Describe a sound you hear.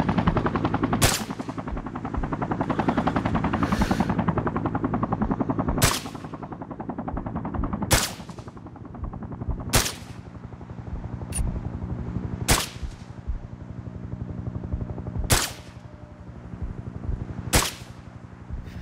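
Rifle shots crack out one at a time at intervals, each followed by a short echo.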